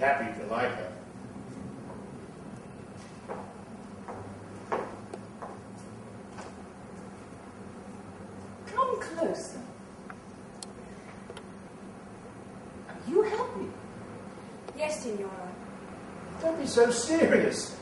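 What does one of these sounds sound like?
A young woman speaks with feeling in short bursts, heard from a distance in a hall.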